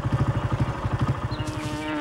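A fly buzzes.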